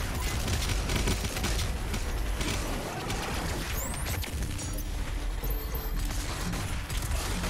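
Game guns fire in rapid bursts.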